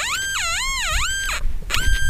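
A small trowel scrapes and digs into dry soil.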